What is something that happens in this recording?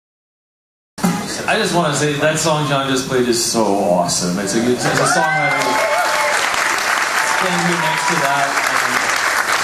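A man talks and laughs into a microphone.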